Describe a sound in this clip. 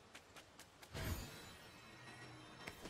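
A magical shimmering whoosh bursts out.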